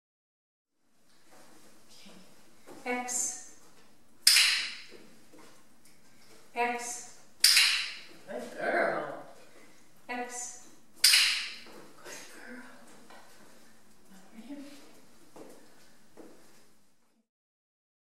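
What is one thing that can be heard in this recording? A woman speaks briefly and cheerfully to a dog nearby.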